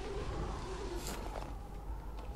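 A heavy thud lands as hands grab onto a ledge.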